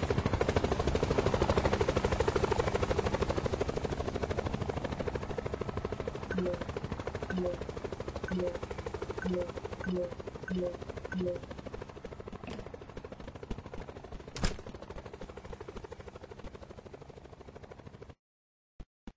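A helicopter's rotor chops steadily and slowly fades.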